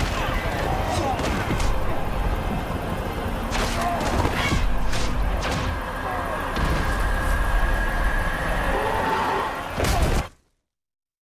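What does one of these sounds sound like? Explosions rumble and boom in a loud battle.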